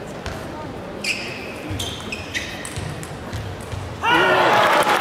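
A ball clicks back and forth between paddles and a table in a quick rally.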